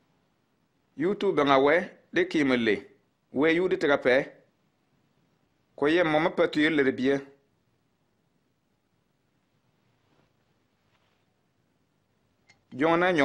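A man speaks calmly and clearly, close by.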